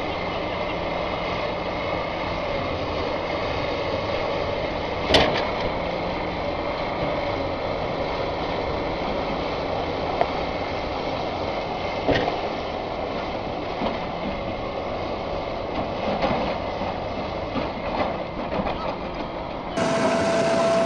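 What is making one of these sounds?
Heavy diesel engines rumble and strain outdoors.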